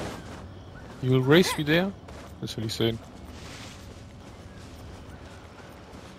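Footsteps patter quickly on grass and stone.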